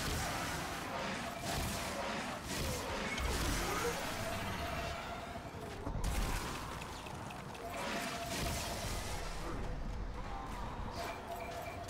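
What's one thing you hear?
Weapons fire in rapid bursts.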